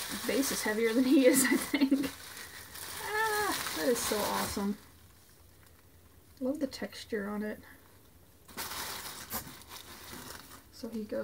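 Bubble wrap crinkles and rustles.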